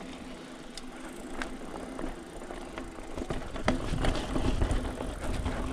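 Bicycle tyres roll and crunch over a bumpy dirt trail.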